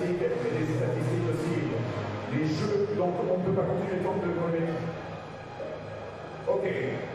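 A man talks in a low voice close by.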